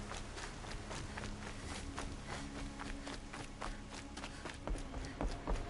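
Footsteps run quickly over dirt and rocks.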